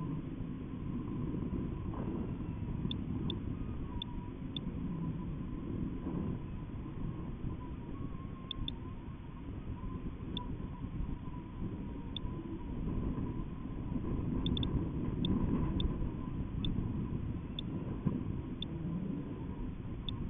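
Wind rushes and buffets roughly against the microphone.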